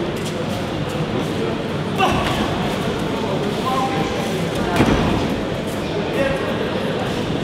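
Boxing gloves thud against each other.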